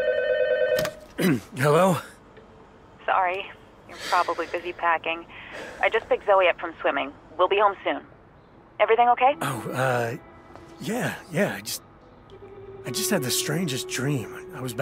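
A man speaks tiredly into a telephone, close by.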